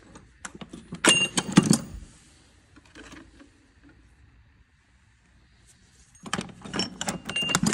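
Metal tools clink and clatter in a toolbox.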